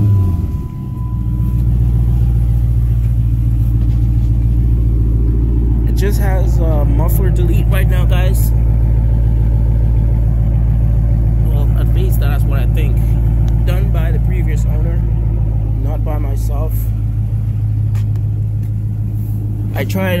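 A car engine idles with a low, steady rumble close by.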